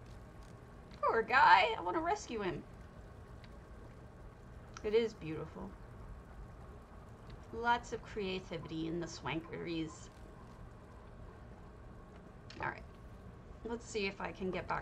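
A woman talks casually and with animation into a close microphone.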